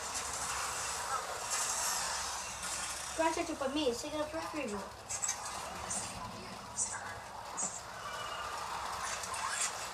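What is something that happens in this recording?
Small electric toy race cars whir along a plastic track.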